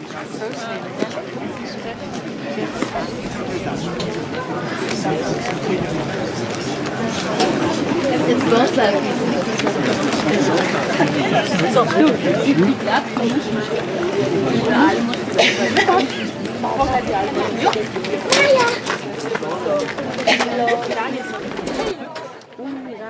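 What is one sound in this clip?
A crowd of adults and children chatter nearby outdoors.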